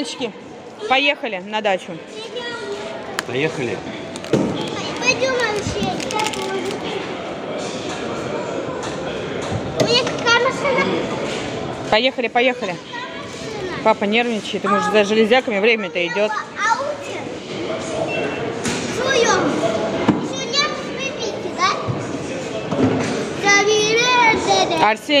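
A young child talks and calls out excitedly close by.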